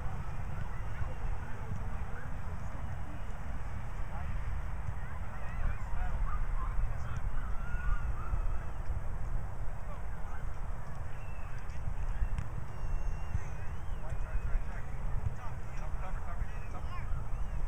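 Children shout and call out in the distance.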